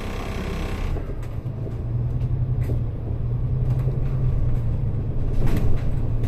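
A heavy vehicle's engine rumbles and grows louder as it pulls away.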